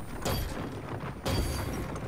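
A heavy melee blow lands with a thud.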